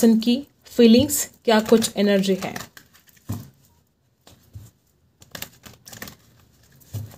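Playing cards shuffle with soft, quick riffling.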